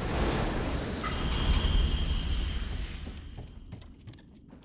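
A bright shimmering chime rings out and fades.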